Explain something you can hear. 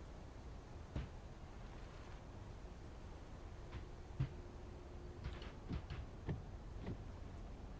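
Plastic controls click and knock a few times.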